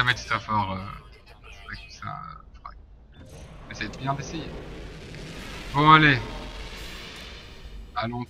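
A spaceship engine hums and rises to a roar as it lifts off.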